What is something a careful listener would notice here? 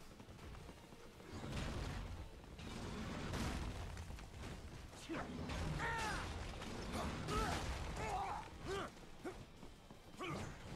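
Blades clash and metal crashes in a fast fight.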